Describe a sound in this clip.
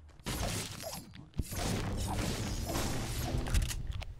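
A pickaxe strikes wood repeatedly with hollow knocks.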